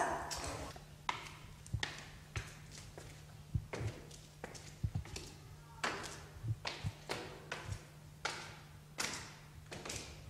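High heels click on hard stairs.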